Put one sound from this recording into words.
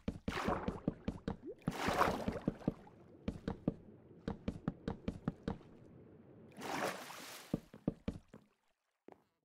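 Water swirls and bubbles as a swimmer moves underwater.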